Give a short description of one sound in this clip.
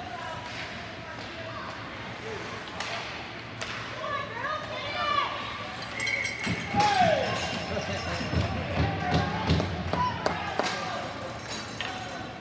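Ice skates scrape and carve across an indoor rink.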